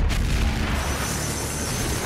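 An electric beam weapon crackles and hums.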